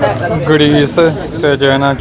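A plastic packet crinkles in a hand.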